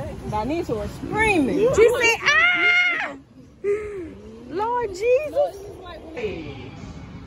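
Young women laugh and chatter close by.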